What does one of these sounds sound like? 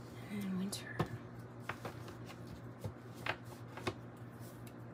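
Cards tap and click as a deck is handled.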